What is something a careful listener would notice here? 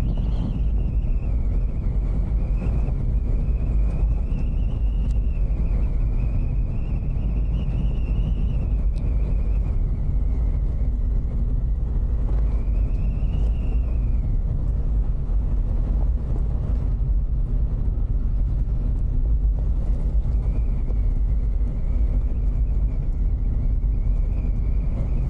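Tyres crunch and rumble on a gravel road.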